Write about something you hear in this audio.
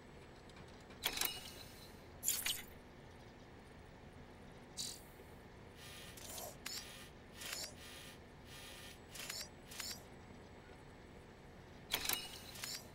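Soft whooshing interface sounds swell and fade.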